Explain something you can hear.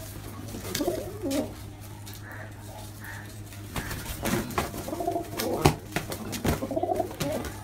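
Pigeon wings flap and beat sharply.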